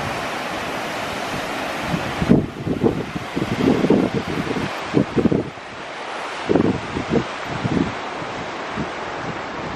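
Ocean surf washes steadily against rocks in the distance.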